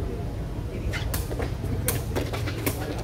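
A volleyball is slapped by hands.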